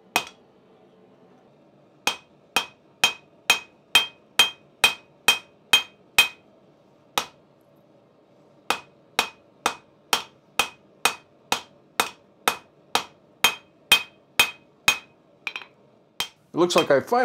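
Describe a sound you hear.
A hammer strikes hot metal on an anvil with sharp ringing blows in a steady rhythm.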